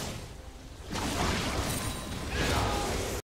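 A magic blast whooshes and crackles.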